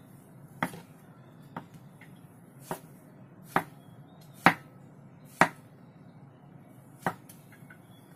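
A knife chops through mushrooms on a wooden board with sharp knocks.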